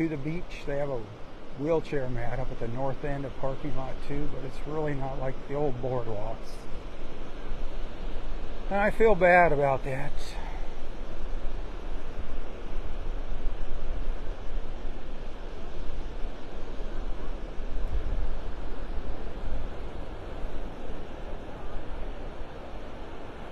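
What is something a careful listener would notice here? Waves wash steadily onto the shore outdoors.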